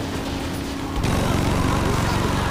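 A car crashes into another vehicle with a loud bang.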